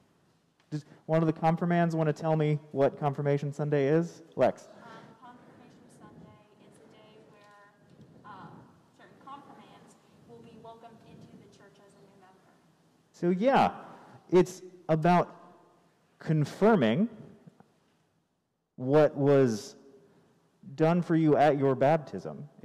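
A man speaks calmly and clearly in a large echoing room.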